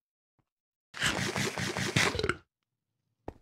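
Bread is munched with loud crunching chews.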